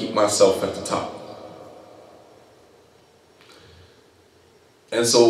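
A man speaks calmly into a close microphone, pausing between phrases.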